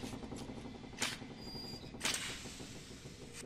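A small metal object clinks as it is picked up.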